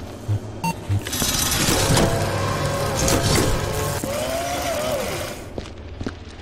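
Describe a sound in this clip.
A machine whirs and rattles while dispensing.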